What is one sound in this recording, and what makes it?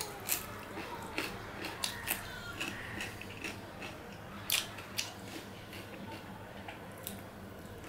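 Cucumber crunches as a man bites into it.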